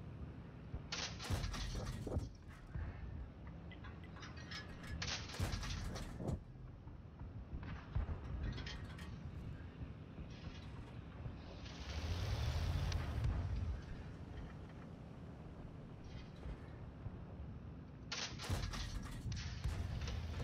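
Tank cannons boom with loud, sharp blasts.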